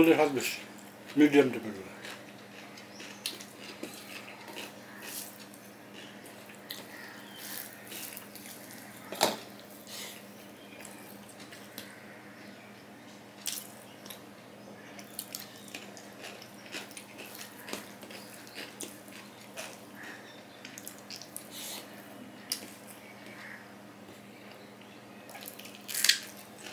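Fingers squish and mix rice on a metal plate, with light clinks.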